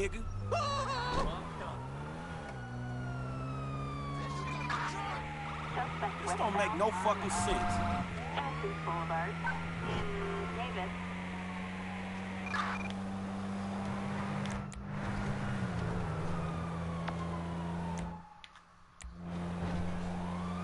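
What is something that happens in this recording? A car engine revs and accelerates, rising and falling in pitch as the gears change.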